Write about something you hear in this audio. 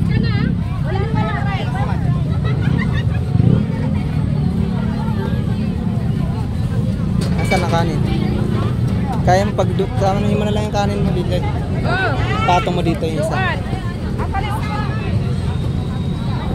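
Women talk with animation nearby.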